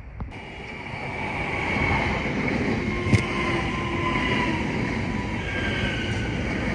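Train brakes squeal with high, wavering tones.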